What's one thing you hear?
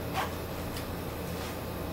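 A cardboard box is handled with soft knocks.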